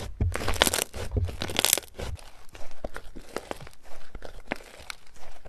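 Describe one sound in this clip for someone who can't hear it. Hands squish and squeeze thick slime with crackling, popping sounds.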